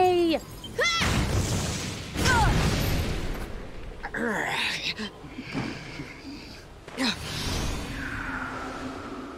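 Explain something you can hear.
Wind gusts through a snowstorm.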